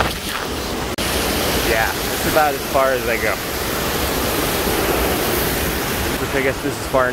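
A waterfall rushes and splashes over rocks nearby.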